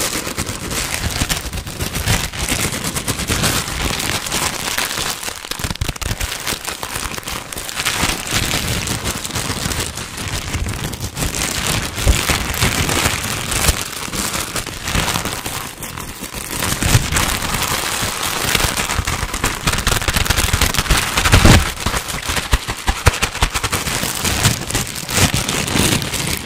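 Plastic packaging crinkles and rustles close to a microphone.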